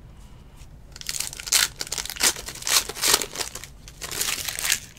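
A foil wrapper crinkles and tears as a pack of cards is opened.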